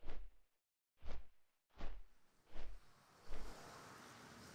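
Heavy footsteps thud in a slow, even rhythm.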